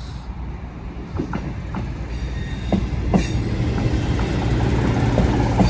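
A train approaches and rushes past close by with a loud rumble.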